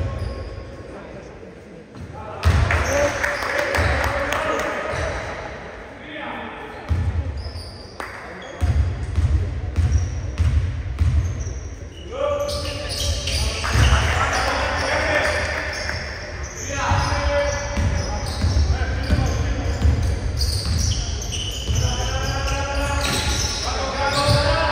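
A basketball bounces on a wooden floor in an echoing hall.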